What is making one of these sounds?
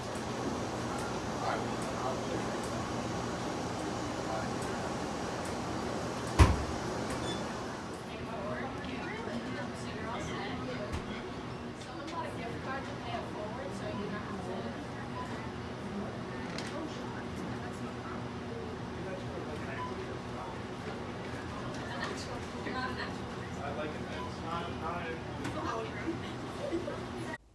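A man and a woman talk quietly at a distance.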